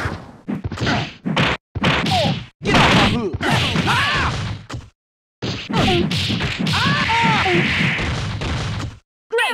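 A burst of fire whooshes.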